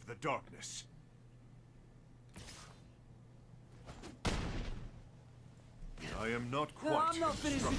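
A man speaks with animation, close to a microphone.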